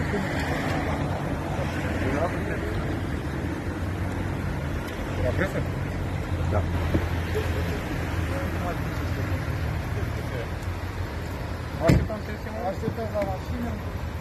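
An elderly man speaks nearby with agitation.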